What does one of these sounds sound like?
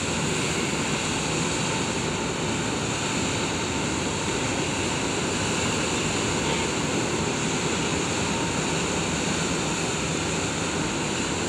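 A boat's wake churns and rushes loudly behind the stern.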